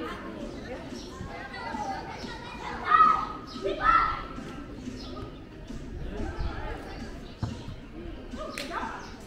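Young men shout to each other across an open football pitch.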